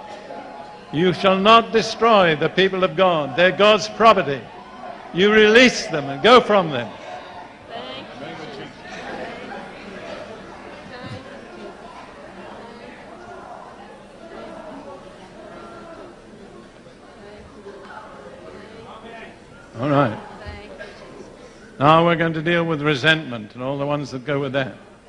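An elderly man speaks loudly and with feeling through a microphone in a large echoing hall.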